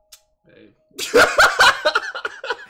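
A young man bursts into loud laughter.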